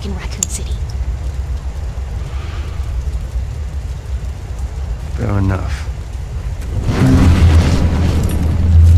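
Fire roars in a deep, steady rumble.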